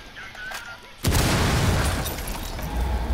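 A wall bursts apart with a loud blast, debris clattering down.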